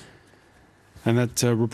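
A man speaks calmly into a microphone, close up.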